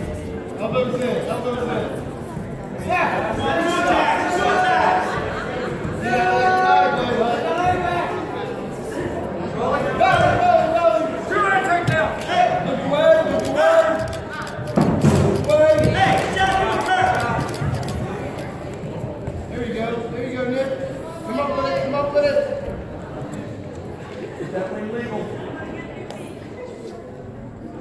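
Spectators shout encouragement in an echoing gym.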